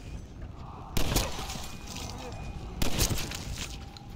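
A gun fires two loud shots.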